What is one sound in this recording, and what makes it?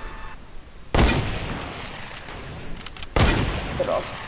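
A gun fires loud, sharp shots.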